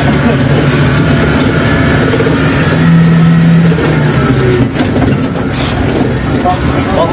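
An engine rumbles steadily inside a moving vehicle.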